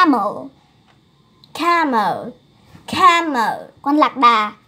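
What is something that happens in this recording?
A young girl speaks clearly, close by.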